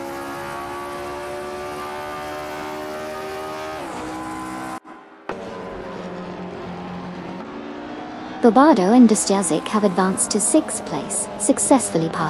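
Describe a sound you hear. A racing car engine whines at a high, steady pitch.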